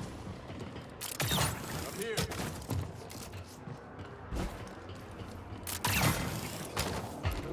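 Heavy thuds land as a figure jumps and climbs.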